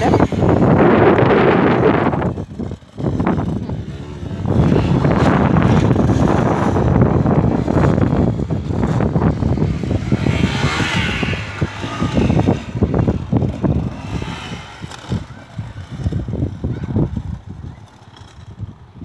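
A dirt bike engine revs and roars, rising and falling.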